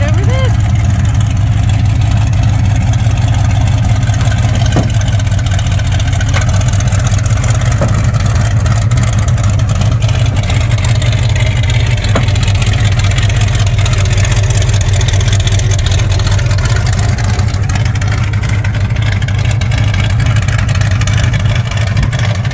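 A big truck engine rumbles loudly and steadily close by.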